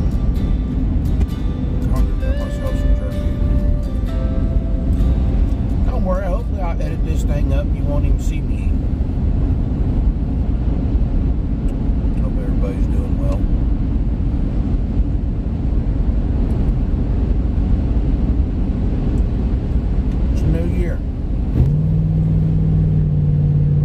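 A car engine and tyres rumble steadily while driving.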